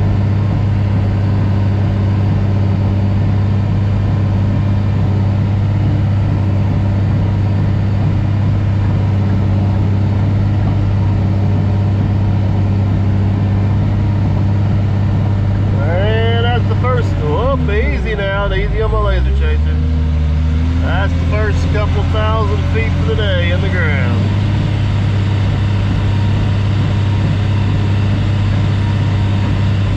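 A heavy engine drones steadily up close.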